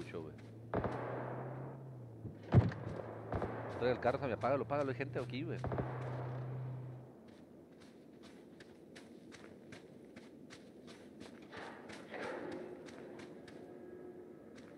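Footsteps crunch quickly over rock and snow.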